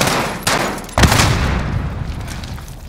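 An explosion booms with a heavy roar.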